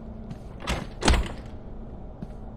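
A heavy metal door rattles but stays shut.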